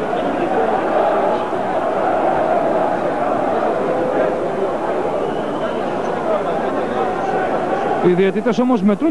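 A large indoor crowd roars and murmurs loudly in an echoing hall.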